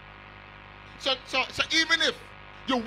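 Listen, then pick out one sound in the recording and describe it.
An elderly man preaches loudly and with animation into a microphone.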